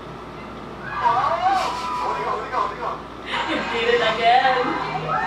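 A young woman laughs softly close by.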